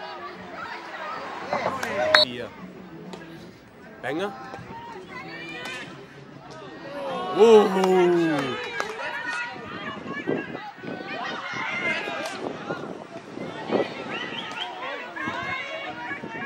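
A crowd of spectators cheers and shouts from a distance.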